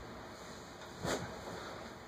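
An office chair creaks as a man sits down.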